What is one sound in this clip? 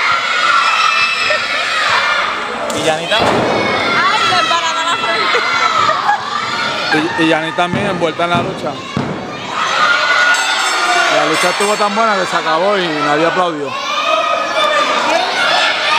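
A crowd of spectators shouts and cheers in a large open hall.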